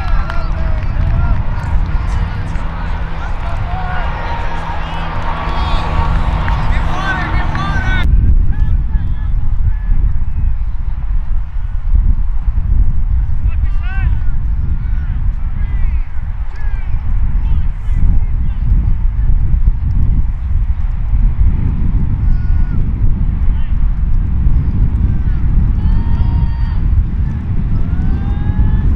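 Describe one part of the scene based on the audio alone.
Young men call out to each other at a distance.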